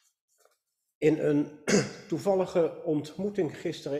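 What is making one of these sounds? An elderly man speaks with animation into a microphone.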